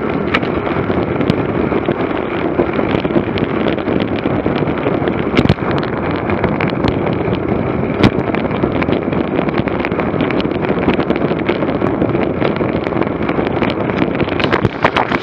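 Tyres hum steadily on a road.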